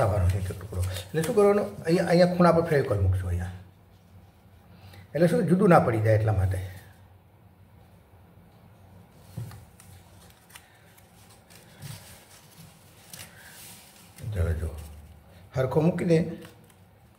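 Paper crinkles and rustles as it is folded by hand.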